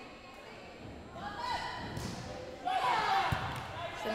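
A volleyball is served with a sharp slap.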